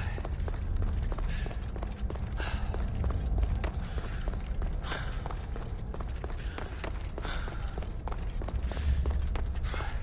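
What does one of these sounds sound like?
Footsteps run quickly across hard stone.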